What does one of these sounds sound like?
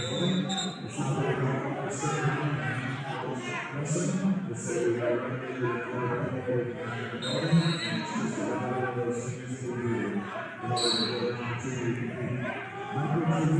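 A crowd of men and women chatter and call out in a large echoing hall.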